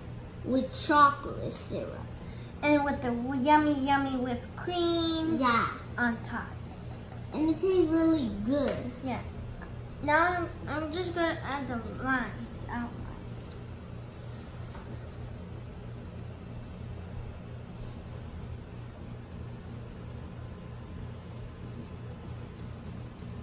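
Pencils scratch softly on paper.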